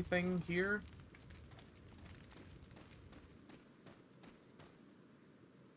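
Footsteps crunch on the ground at a steady pace.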